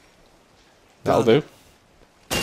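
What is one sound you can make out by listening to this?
A crossbow fires a bolt with a sharp thud.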